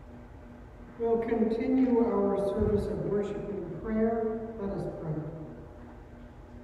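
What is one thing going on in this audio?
An elderly woman speaks calmly into a microphone in a large echoing hall.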